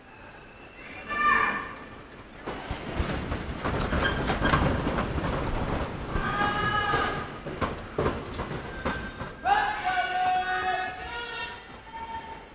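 A brass band plays short phrases in a large echoing hall.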